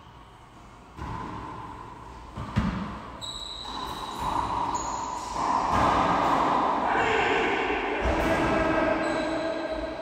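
A racquetball smacks sharply against the walls in an echoing court.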